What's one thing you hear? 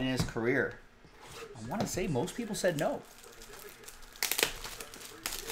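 Plastic wrap crinkles and tears as a box is opened.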